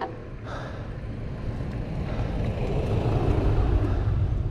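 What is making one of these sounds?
A car engine rumbles closer and passes nearby.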